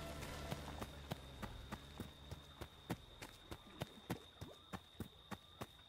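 Footsteps run quickly through dry leaves and brush.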